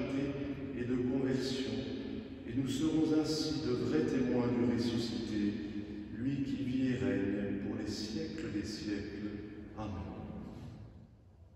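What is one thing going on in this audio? A man chants into a microphone in an echoing hall.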